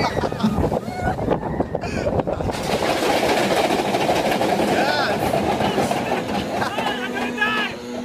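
Wind roars loudly past a close microphone.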